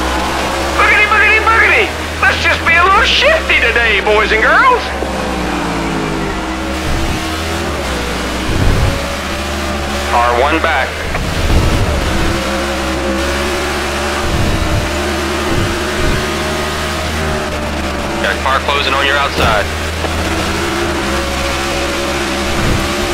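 A race car engine roars steadily at high revs.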